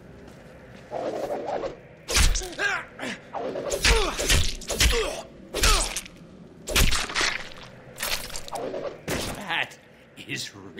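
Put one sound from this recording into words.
Heavy blows and slashing hits land in a fight.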